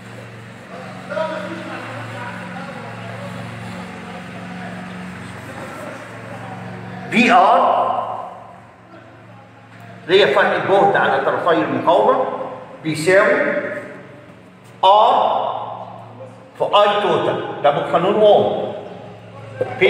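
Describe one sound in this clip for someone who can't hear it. An older man speaks steadily, explaining, close by.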